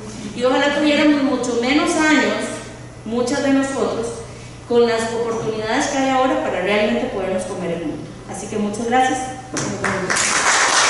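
A woman sings into a microphone, heard through loudspeakers in an echoing room.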